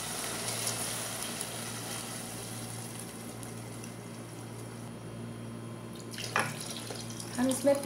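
Water pours and splashes into a pot of liquid.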